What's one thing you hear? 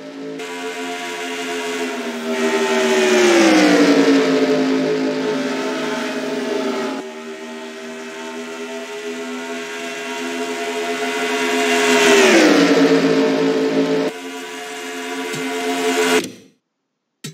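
Racing car engines roar loudly past, rising and falling in pitch as they sweep by.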